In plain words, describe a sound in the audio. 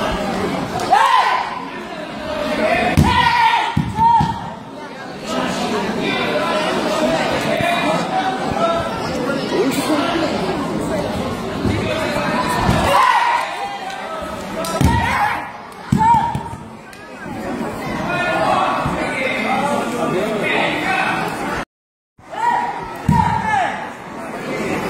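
Men shout sharply as they throw.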